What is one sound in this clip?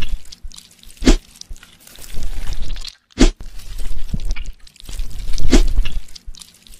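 Tweezers pluck things out with wet, squelching pops.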